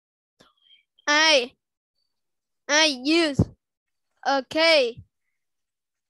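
A child speaks slowly and clearly, word by word, heard through an online call.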